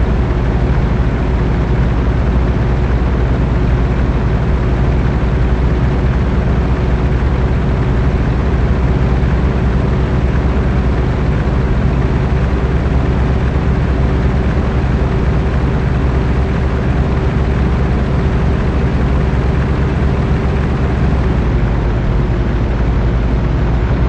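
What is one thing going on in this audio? Tyres roll over a gravel road.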